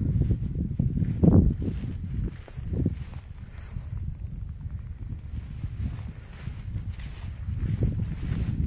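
Wind buffets and rumbles outdoors in gusts.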